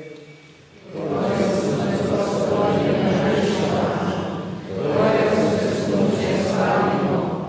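Several men sing together loudly through a loudspeaker.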